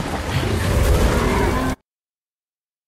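A large monster growls.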